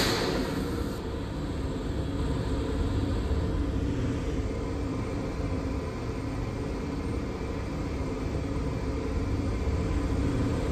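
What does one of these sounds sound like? A stopped subway train hums with a low, steady rumble.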